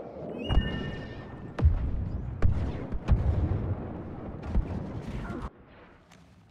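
Explosions boom and gunfire crackles close by.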